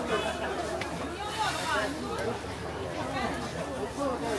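Dough sizzles on a hot griddle.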